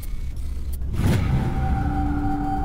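A synthesized chime tone rings out.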